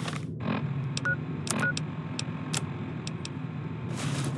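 Short electronic clicks and beeps sound one after another.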